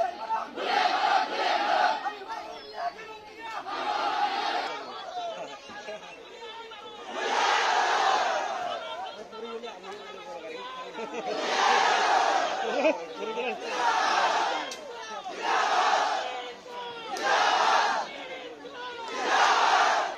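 A large crowd chants slogans loudly outdoors in bursts.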